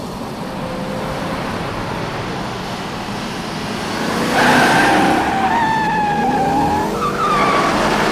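A car engine roars as a car approaches.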